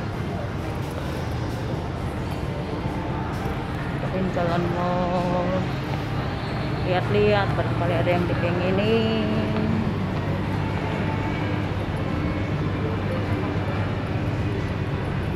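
A low, steady murmur of people echoes through a large indoor hall.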